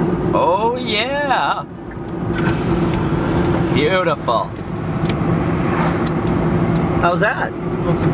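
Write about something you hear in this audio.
A car engine hums steadily with road noise from the tyres.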